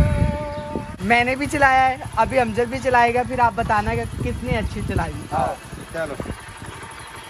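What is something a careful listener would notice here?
A young woman laughs and talks with animation close by.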